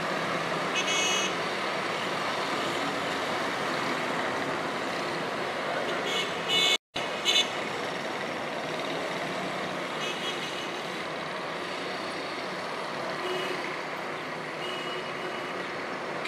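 Car horns honk now and then far off.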